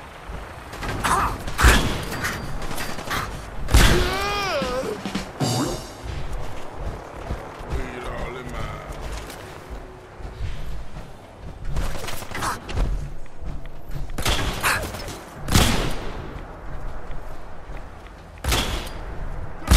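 Gunfire bursts out in loud, sharp cracks.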